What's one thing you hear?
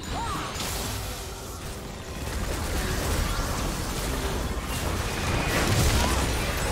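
Game spell effects whoosh and crackle during a fight.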